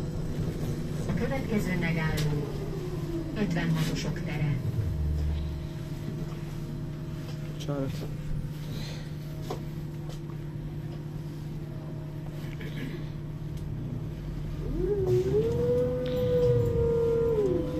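A tram's motor whines, rising and falling in pitch.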